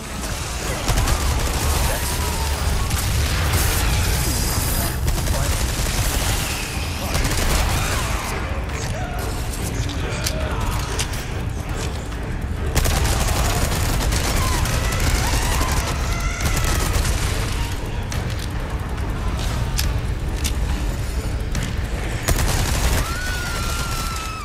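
Gunshots bang loudly and echo.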